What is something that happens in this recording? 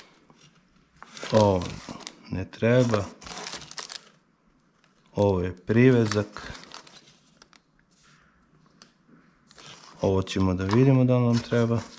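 Plastic packaging rustles and crinkles in hands.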